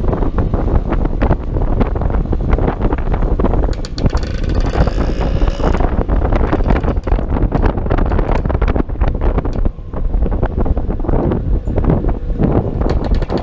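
Wind buffets loudly, gusting and rumbling.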